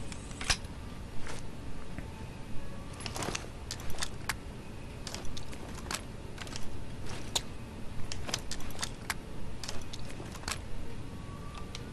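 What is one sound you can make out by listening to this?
Weapons click and clatter as they are switched.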